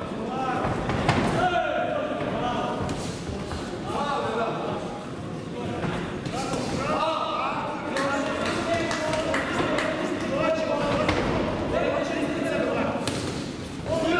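Gloves thud against a body and gloves in quick punches.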